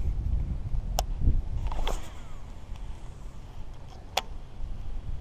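A fishing reel clicks.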